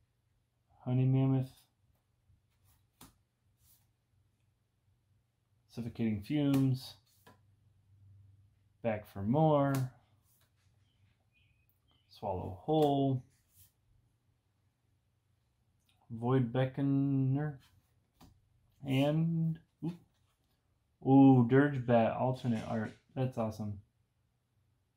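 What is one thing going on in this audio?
A man talks calmly and close by, in short bursts with pauses.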